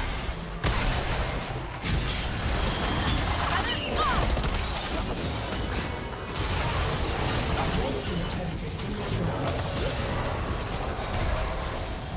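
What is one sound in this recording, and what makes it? Magic spells burst and crackle in a busy video game fight.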